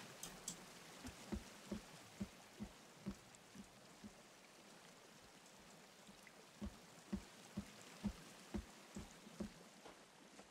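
Footsteps thud in a quick, regular rhythm.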